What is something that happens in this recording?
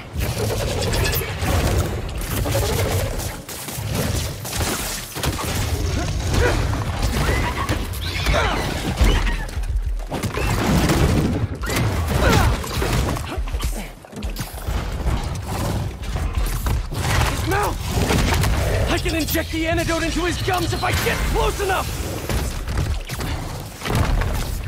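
A large creature roars and snarls.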